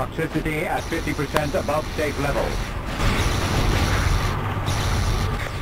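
An electric beam crackles and zaps.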